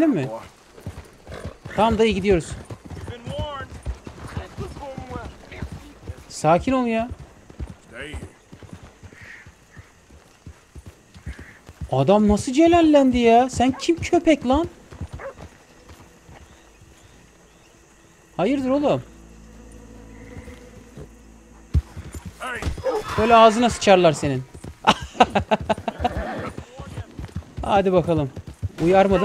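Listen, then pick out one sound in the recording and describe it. Horse hooves thud on a dirt path.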